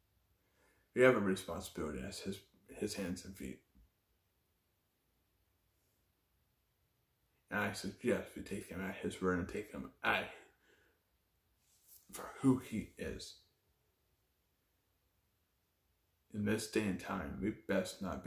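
A young man speaks calmly and close to the microphone, with pauses.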